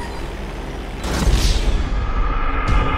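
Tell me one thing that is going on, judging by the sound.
A plane crashes with a loud, booming explosion.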